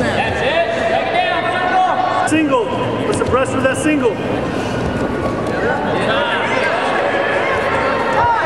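A small crowd of spectators murmurs and calls out in a large echoing gym.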